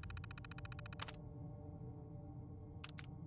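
A computer terminal gives short electronic clicks.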